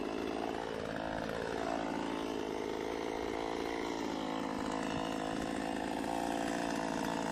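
A small chainsaw engine runs close by, its pitch rising and falling as it revs.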